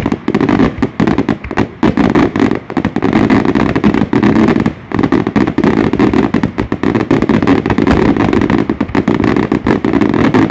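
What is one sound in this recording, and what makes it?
Fireworks crackle and bang rapidly overhead.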